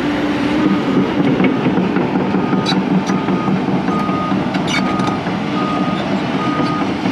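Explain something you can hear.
Metal tracks clank and squeak as a digger drives over dirt.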